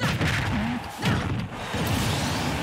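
A loud blast bursts as a fighter is struck.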